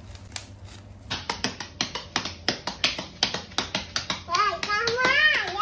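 Bubble wrap pops sharply in quick bursts, close by.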